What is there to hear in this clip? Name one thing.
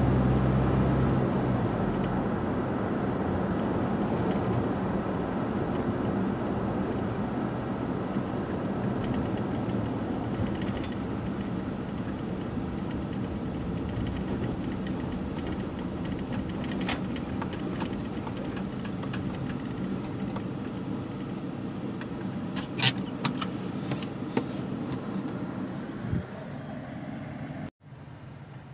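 A car engine hums and tyres roll on the road, heard from inside the car.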